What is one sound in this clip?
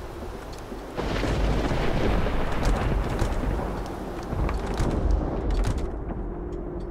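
Heavy rain pours down outside, loud through an open window.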